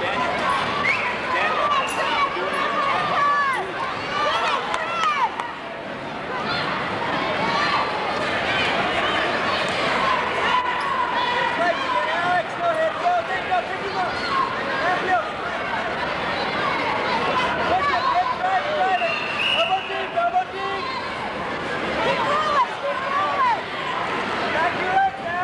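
A large crowd chatters and shouts in a big echoing hall.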